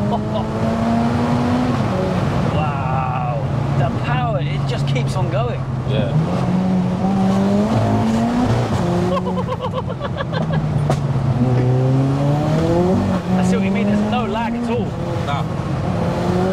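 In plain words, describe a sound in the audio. A young man talks and laughs close to a microphone.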